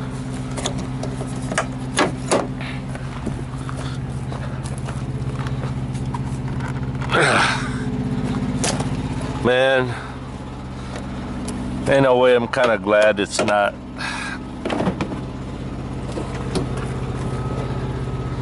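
Hands tap and knock on a truck's body panels.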